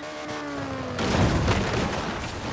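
A car lands heavily with a loud thud and scrape.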